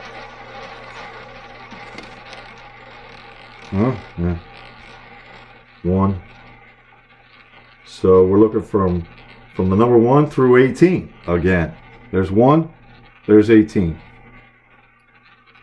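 A roulette ball rolls with a steady whirr around a spinning wheel and slowly fades.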